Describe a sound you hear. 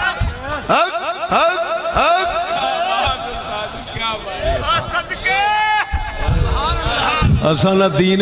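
A man chants passionately through a microphone, echoing over loudspeakers.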